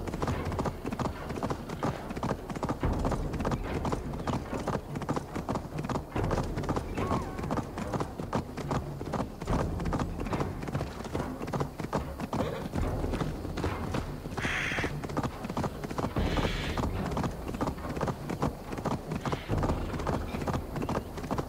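Horse hooves gallop rapidly over stony ground and dirt.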